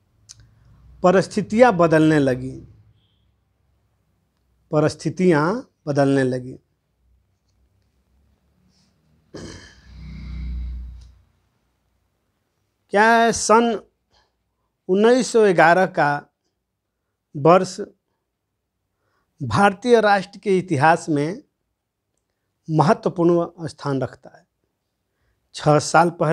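An elderly man speaks calmly and closely into a microphone, with pauses.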